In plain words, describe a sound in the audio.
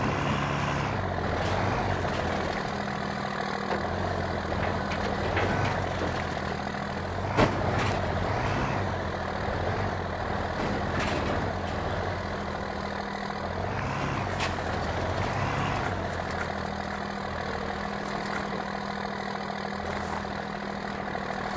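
Tyres crunch over dirt and bumps.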